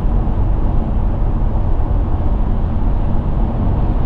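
A lorry rushes past close by.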